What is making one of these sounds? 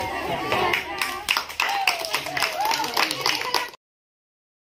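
A woman claps her hands in rhythm.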